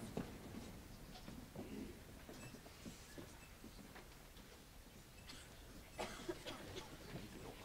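An audience rustles and shifts quietly in a large hall.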